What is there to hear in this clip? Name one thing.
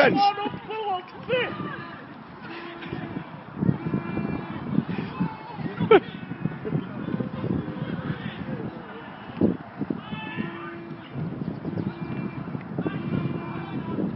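Football players shout to each other in the distance outdoors.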